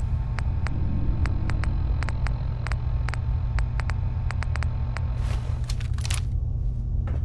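Soft electronic clicks tick quickly as a menu list scrolls.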